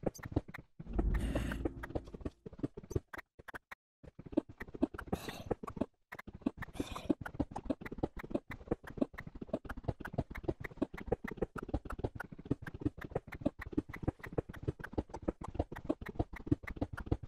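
Blocks break in quick, rapid clicks and crunches.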